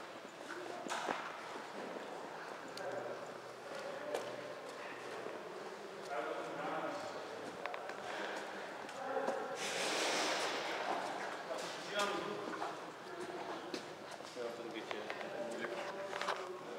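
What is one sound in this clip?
Clothing and gear rustle as people move about.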